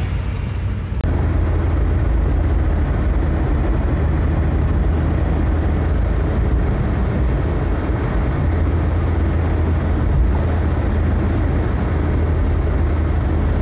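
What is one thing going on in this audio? Tyres roar on a highway.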